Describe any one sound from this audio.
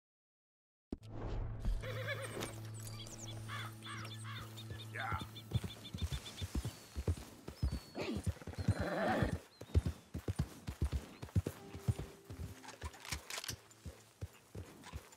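A horse gallops through tall grass with heavy hoofbeats.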